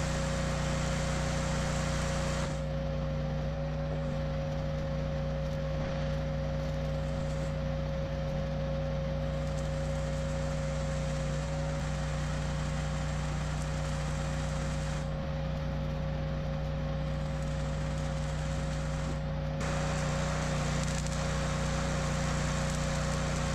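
An electric welder crackles and hisses.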